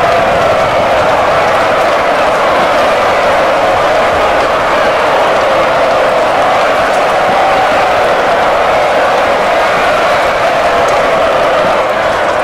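Many horses' hooves thunder across the ground in a charge.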